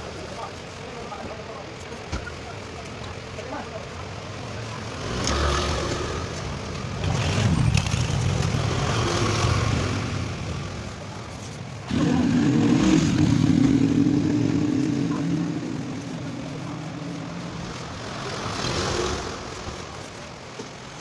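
A trowel scrapes and smooths wet cement.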